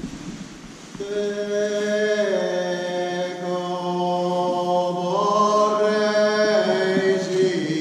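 A choir of women sings a slow, sustained hymn in a large echoing hall.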